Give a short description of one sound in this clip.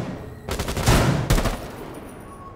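Rifle shots fire in a quick burst.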